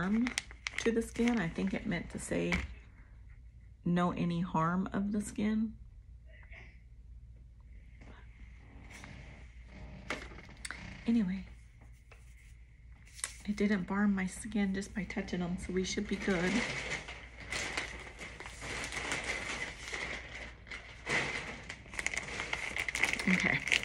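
A plastic package crinkles as it is handled.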